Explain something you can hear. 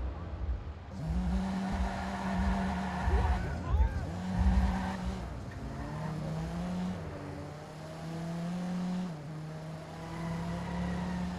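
A car engine revs hard and rises and falls in pitch.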